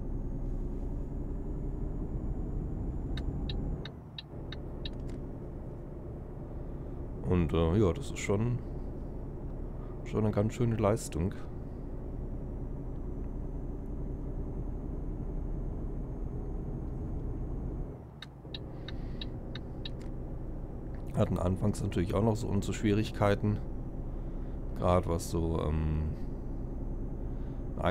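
A truck engine hums steadily, dipping briefly as gears change.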